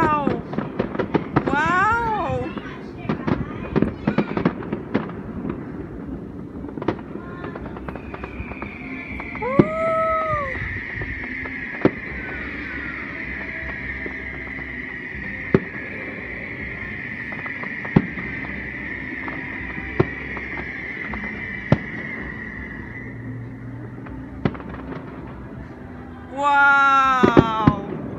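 Fireworks crackle and fizz.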